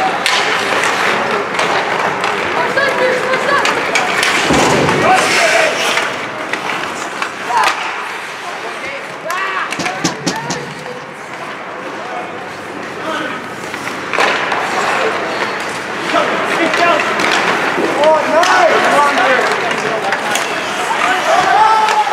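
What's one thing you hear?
Skates scrape and carve across ice.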